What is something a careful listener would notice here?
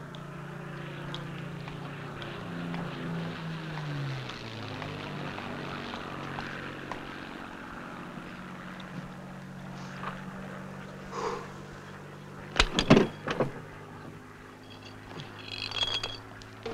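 An aircraft engine hums steadily, its pitch wavering early on.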